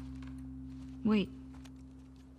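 A young woman calls out a single short word.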